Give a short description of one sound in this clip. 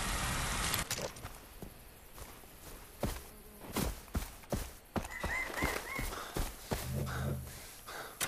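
Footsteps tread on grass and earth.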